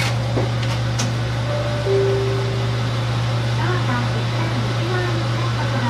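A train's engine idles with a steady low hum.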